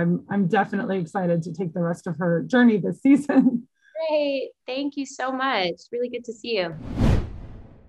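A woman talks cheerfully over an online call.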